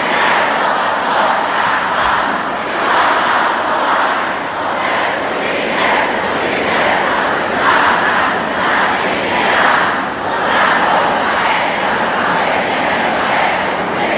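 A young man raps loudly through a microphone and loudspeakers.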